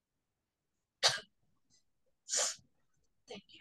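A young girl coughs twice over an online call.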